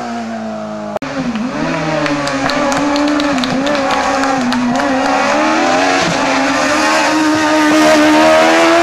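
A second race car engine screams and revs through gear changes as it speeds past.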